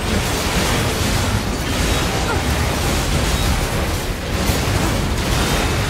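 Metal blades clang and slash against machines.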